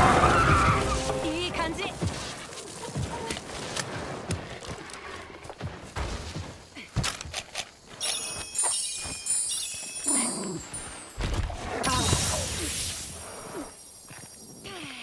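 Footsteps run quickly over grass and rock.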